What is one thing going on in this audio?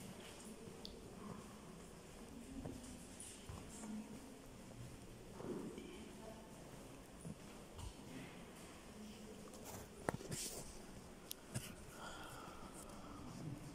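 Footsteps echo along a long hard-floored hallway.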